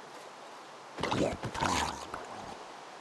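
A sword strikes a squid in water with soft thuds.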